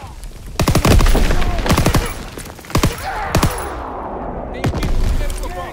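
A submachine gun fires in bursts.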